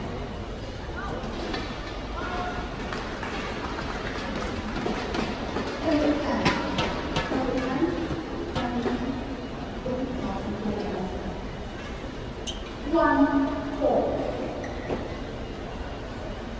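Spectators murmur and chatter nearby.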